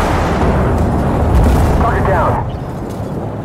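A heavy explosion booms and rumbles away.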